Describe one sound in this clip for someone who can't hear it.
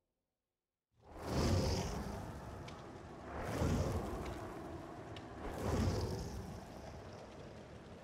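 Whooshing sounds swell up and fade, one after another.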